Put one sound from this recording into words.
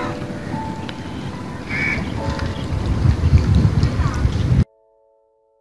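Wind rumbles outdoors by open water.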